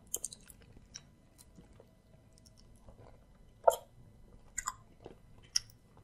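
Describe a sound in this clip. A man chews and smacks his lips wetly close to a microphone.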